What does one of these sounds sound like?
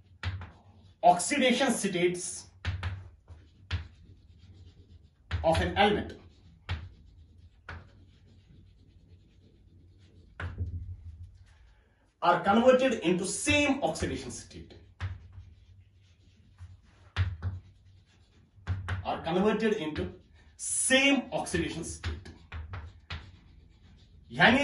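A young man speaks calmly close by, in short phrases with pauses.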